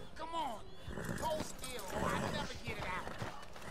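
Horse hooves thud softly on grass.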